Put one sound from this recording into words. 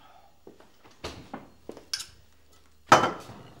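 Jars clink on a countertop.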